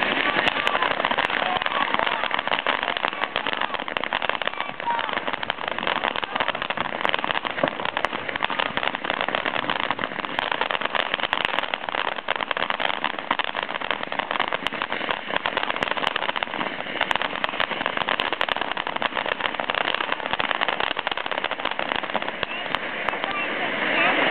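A firework fountain hisses and roars steadily nearby.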